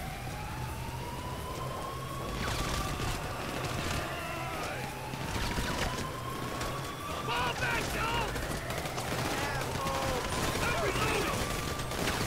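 Footsteps run across hard pavement.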